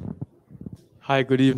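A second young man speaks into a microphone.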